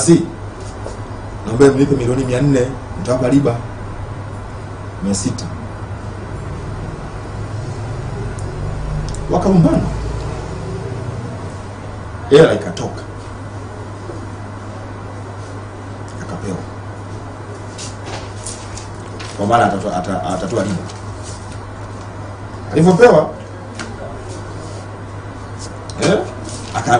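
A man speaks into microphones in short, emphatic bursts with pauses between.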